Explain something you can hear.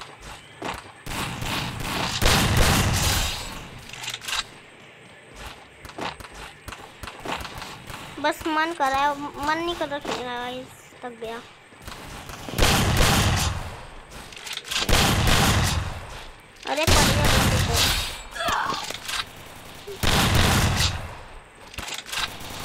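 Gunshots fire in loud rapid bursts.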